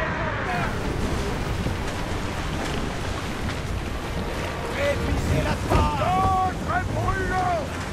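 Waves wash against a ship's hull in the wind.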